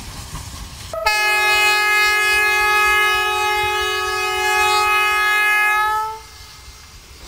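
A steam whistle blows a loud, steady blast.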